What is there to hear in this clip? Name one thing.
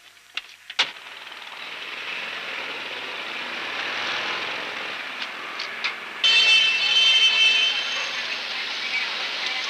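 Street traffic rumbles steadily in the background.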